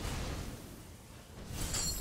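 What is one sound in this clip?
A shimmering magical whoosh rings out.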